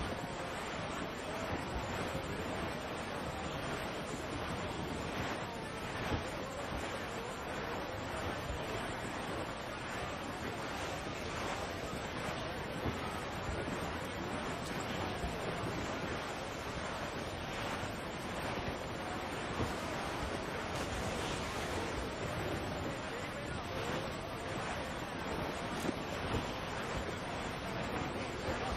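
Waves rush and splash against a ship's hull.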